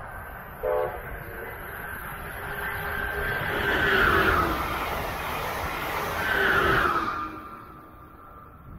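A high-speed train rushes past close by, roaring and then fading away.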